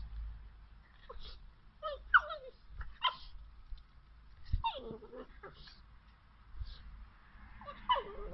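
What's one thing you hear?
A cat yowls and growls in short bursts.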